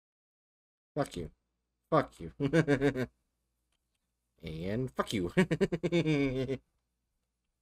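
A game zombie groans low and hoarsely.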